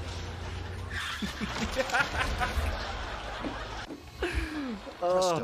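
A young man laughs heartily into a close microphone.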